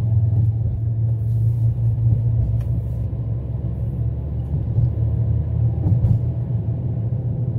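Tyres roll steadily on the road.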